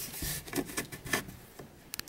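A hand knocks lightly against a wooden shelf.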